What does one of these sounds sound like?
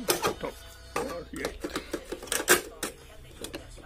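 A plastic cassette clacks into the deck.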